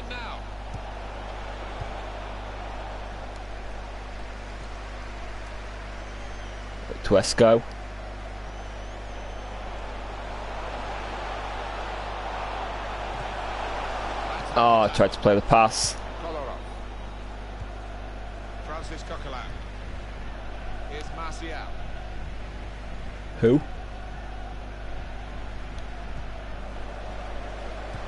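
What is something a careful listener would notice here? A large stadium crowd murmurs and roars steadily in the distance.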